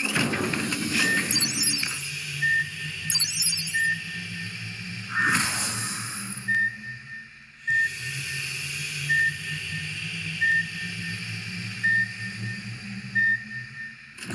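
A countdown timer beeps with short, high electronic tones at a steady pace.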